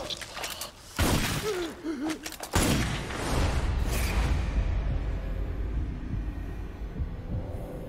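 A loud explosion bursts and rumbles.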